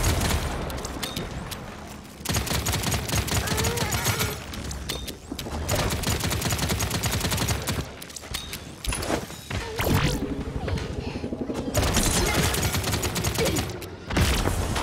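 A gun fires rapid shots in a game.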